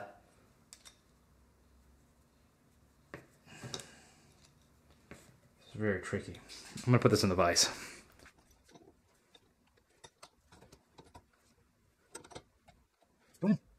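Metal tools click and tap lightly against metal parts.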